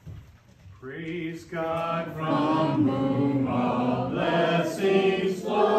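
A congregation sings together in a large, echoing hall.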